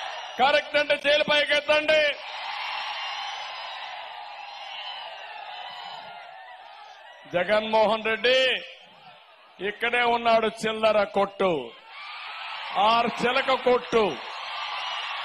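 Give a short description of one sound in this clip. A man speaks forcefully through a loudspeaker in short bursts.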